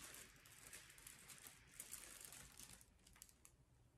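A young woman sniffs deeply.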